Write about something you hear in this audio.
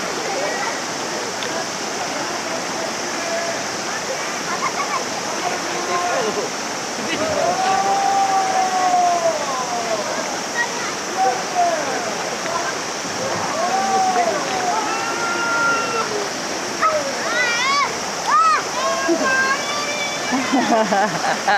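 Young men and women talk and call out nearby outdoors.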